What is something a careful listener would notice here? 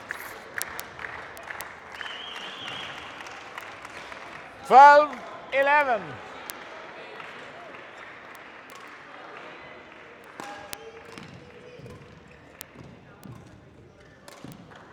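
Sports shoes squeak on a hard court.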